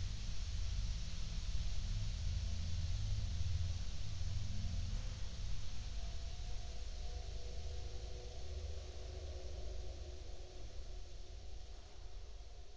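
A muffled, distant band plays slow music.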